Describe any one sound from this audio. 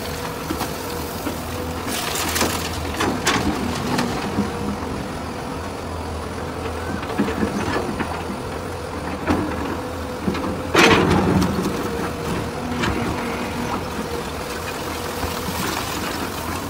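Bricks and rubble crash and clatter as they fall.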